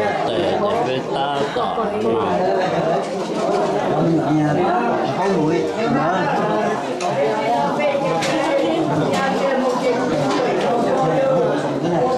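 Dishes and cutlery clink on a table.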